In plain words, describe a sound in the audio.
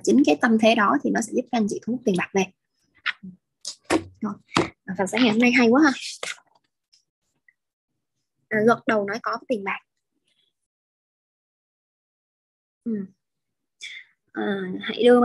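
A young woman speaks calmly over an online call, with pauses.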